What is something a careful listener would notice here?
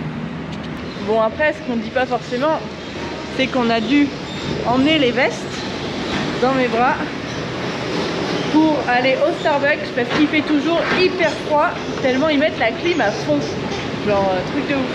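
A young woman talks close to the microphone, with animation.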